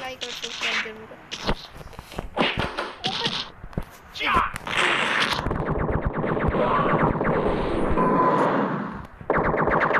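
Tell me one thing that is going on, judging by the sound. Punches and kicks thud in a fighting game.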